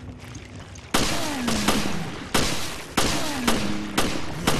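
Gunshots fire loudly, one after another, with short echoes.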